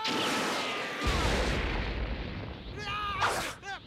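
Rock bursts apart with a deep rumbling crash.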